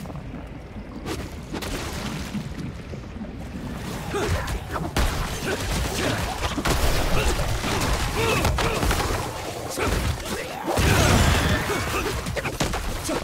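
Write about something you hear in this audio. Fighting sounds crash and whoosh, growing louder.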